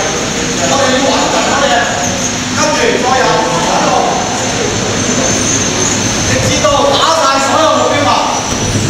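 A man talks with animation into a microphone, heard through loudspeakers in an echoing hall.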